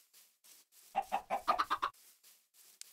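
Tall grass rustles and breaks in a short burst.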